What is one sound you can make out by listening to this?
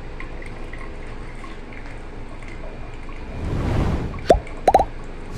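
Liquid trickles softly through a coffee filter.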